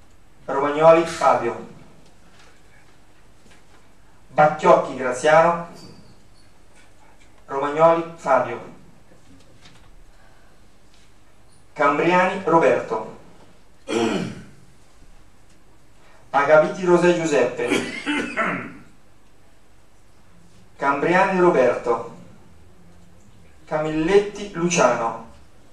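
A man speaks calmly in short phrases with pauses, heard through a microphone in a room.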